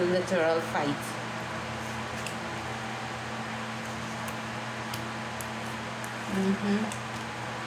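Playing cards rustle and slap softly as they are shuffled.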